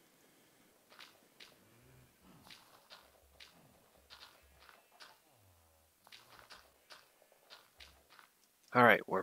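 Soft crunchy taps come in quick succession.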